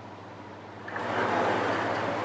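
A large display panel slides along its track.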